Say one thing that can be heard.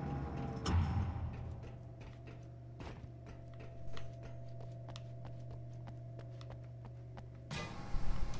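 Footsteps clang quickly on metal grating.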